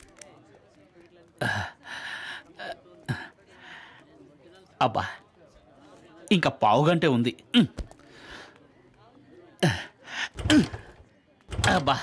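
A man mutters to himself up close.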